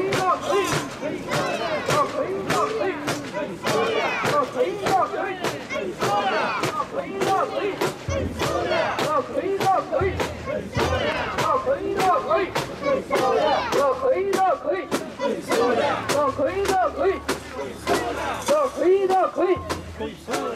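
Metal rings on a portable shrine jingle with each step.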